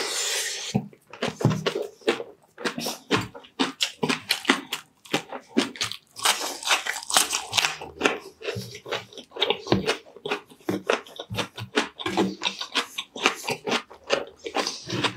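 A man chews crunchy food loudly and wetly close to a microphone.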